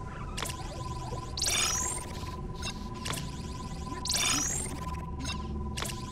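Short electronic blips click as a menu selection moves.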